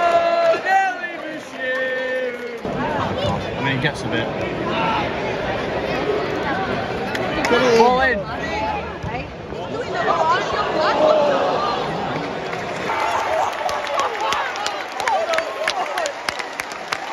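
A large crowd murmurs and chants in a stadium.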